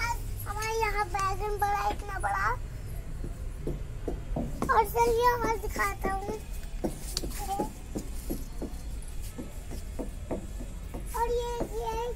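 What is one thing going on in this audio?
A young child talks loudly close by.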